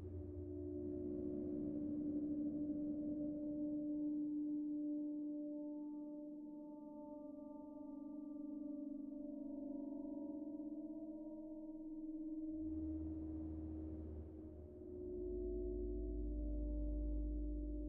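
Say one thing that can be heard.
A synthesizer plays a steady, droning pitched sequence that shifts in tone.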